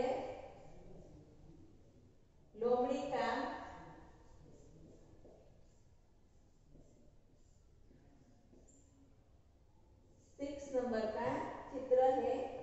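A woman speaks clearly and slowly, as if teaching, close by.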